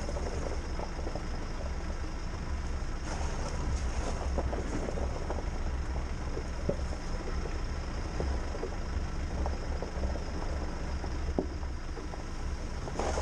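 Tyres crunch and bump over a rough dirt track, with occasional knocks.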